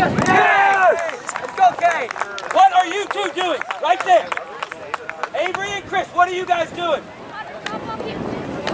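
Young players shout and call out loudly outdoors.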